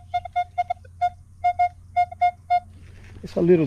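A metal detector beeps in quick short bursts.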